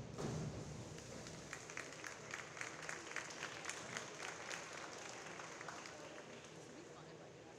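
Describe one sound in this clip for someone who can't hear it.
A crowd claps and cheers in an echoing hall.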